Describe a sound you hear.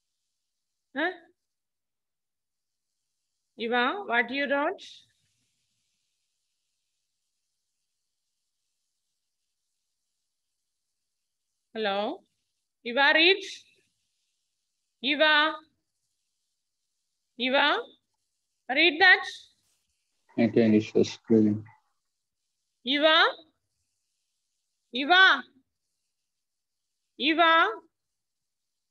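A woman speaks in short, separate phrases through a headset microphone, with pauses between them.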